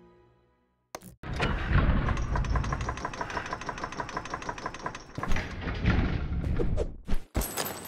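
A stone platform rumbles and grinds as it moves.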